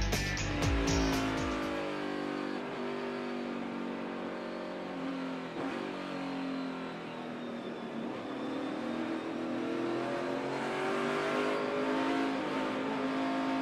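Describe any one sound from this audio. A race car engine roars at high speed, shifting gears up and down.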